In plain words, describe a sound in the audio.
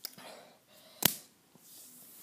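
A young boy claps his hands to his mouth with a sharp smack.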